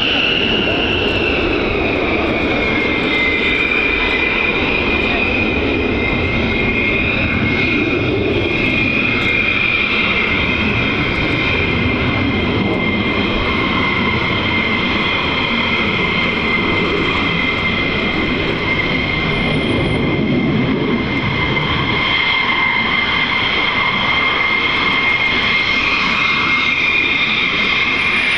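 A jet engine whines and roars steadily close by as a fighter jet taxis.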